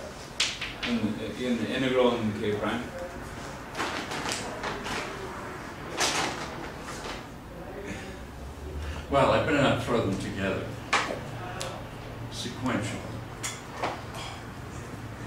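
An elderly man lectures, speaking with animation.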